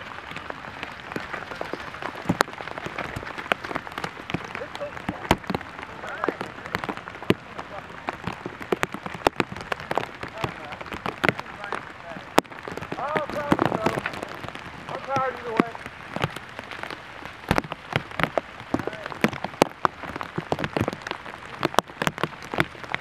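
Bicycles rattle and clatter over bumpy grass.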